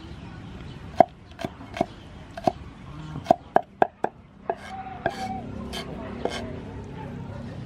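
A cleaver chops garlic with sharp, loud knocks on a wooden board.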